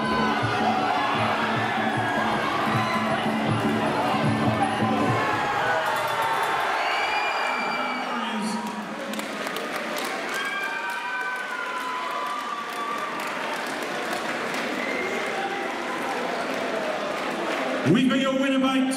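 A crowd cheers and shouts in a large hall.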